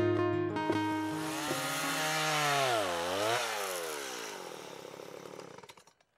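A chainsaw engine revs loudly, dips and then winds down.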